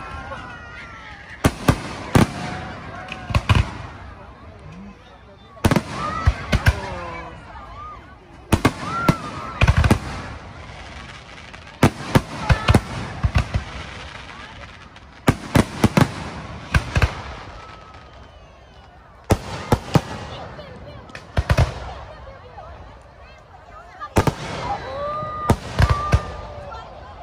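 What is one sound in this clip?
Fireworks whistle and crackle as they rise and fizz.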